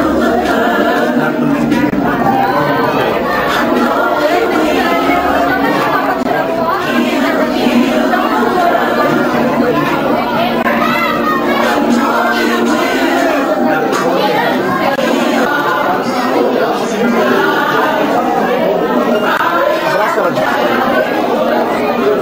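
Several adults talk over one another in a lively crowd nearby.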